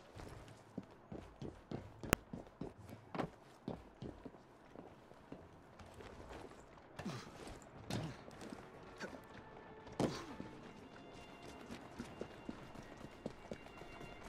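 Footsteps thud and clatter on rooftops and cobbles.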